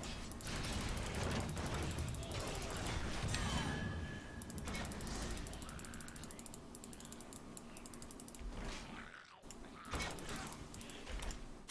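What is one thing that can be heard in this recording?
Computer game combat effects zap, clash and whoosh.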